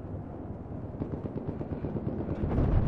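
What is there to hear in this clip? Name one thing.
Footsteps crunch on snow close by.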